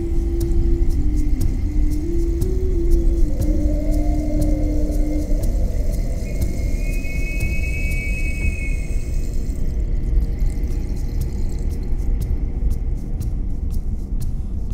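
Tyres rumble on a road.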